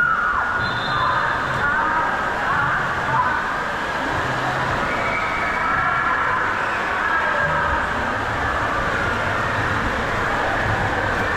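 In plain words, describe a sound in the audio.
Water rushes and splashes steadily down a slide in a large echoing hall.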